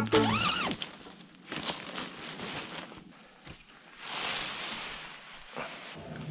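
Nylon tent fabric rustles and crinkles as it is handled.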